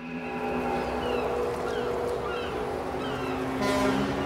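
Gulls cry overhead.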